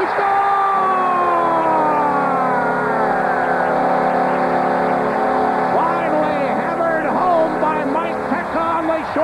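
A large crowd cheers loudly in a big arena.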